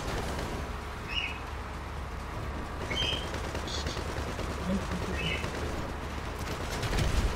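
A vehicle engine rumbles low and steady in an echoing tunnel.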